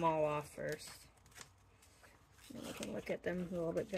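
Paper sheets rustle as hands handle them.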